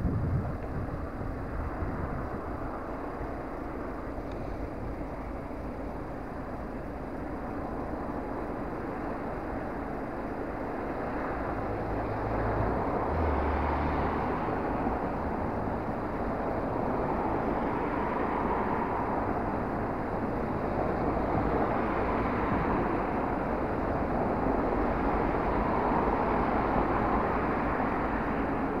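A car engine idles with a steady rumble.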